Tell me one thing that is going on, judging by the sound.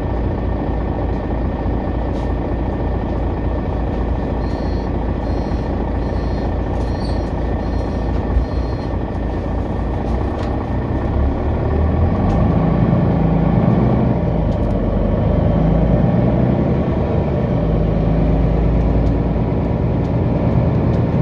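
A vehicle engine rumbles low and steadily, growing louder as the vehicle pulls away and drives along.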